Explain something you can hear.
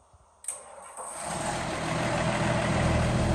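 A tractor's diesel engine rumbles loudly.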